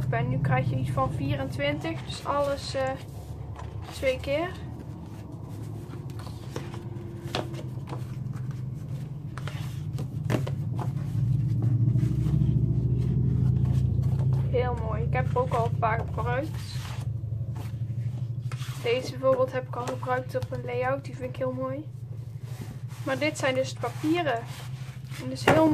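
Sheets of paper rustle and slide against each other as they are handled.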